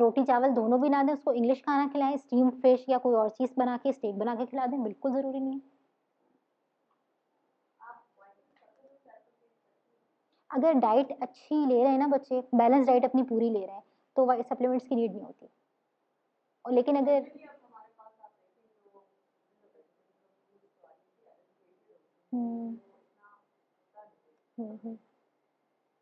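A woman speaks calmly into a microphone, pausing now and then.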